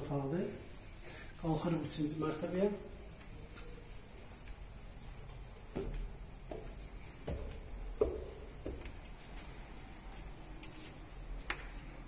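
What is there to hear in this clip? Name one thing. Footsteps thud on wooden stairs.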